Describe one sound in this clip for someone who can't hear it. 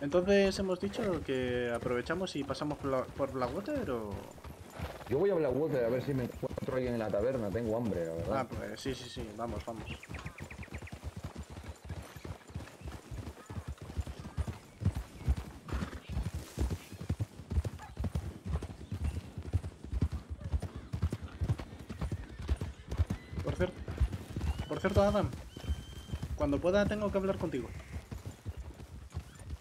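Horses' hooves thud steadily on a dirt trail.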